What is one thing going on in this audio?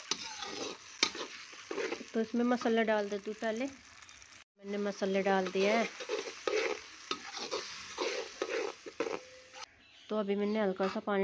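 A metal spatula scrapes and stirs in an iron wok.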